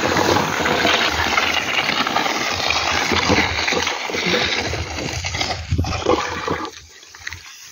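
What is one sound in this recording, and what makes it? A wooden rake drags through a layer of dried corn kernels.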